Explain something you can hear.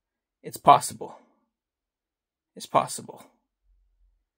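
A man speaks briefly and casually, close up.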